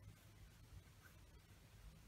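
A paintbrush brushes softly across paper.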